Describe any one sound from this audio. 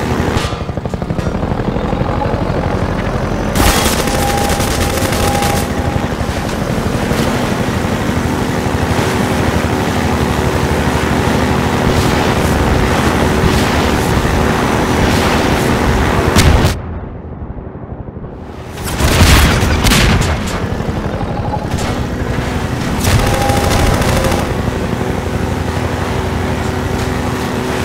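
A buggy engine drones and revs loudly.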